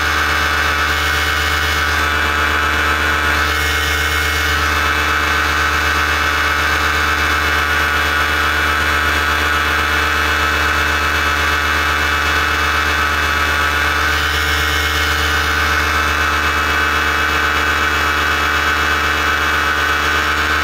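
A paramotor engine drones steadily nearby.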